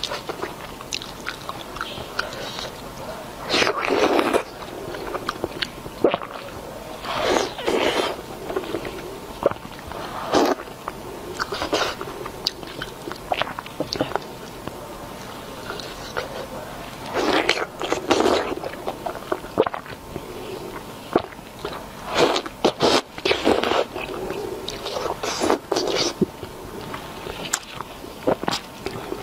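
A young woman chews and slurps food noisily close to a microphone.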